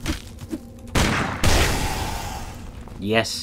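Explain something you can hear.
A heavy blow strikes a creature with a thudding crash.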